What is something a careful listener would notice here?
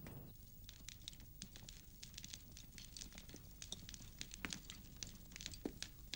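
Footsteps tap on a wooden floor indoors.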